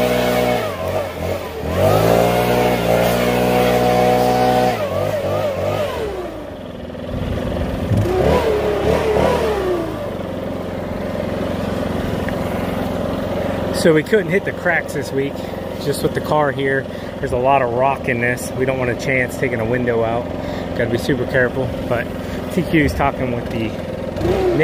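A handheld leaf blower whirs loudly nearby.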